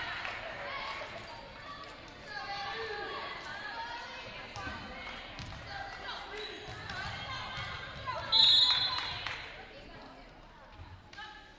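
Young women players call out to each other in an echoing gym.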